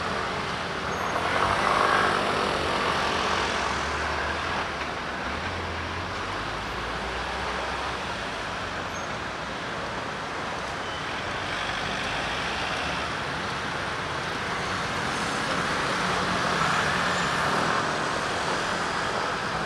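Scooters buzz past close by.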